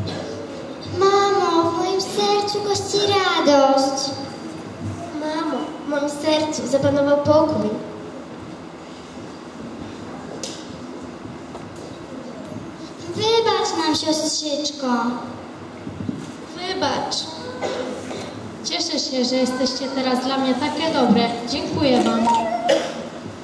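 A young girl speaks into a microphone, heard through loudspeakers in an echoing hall.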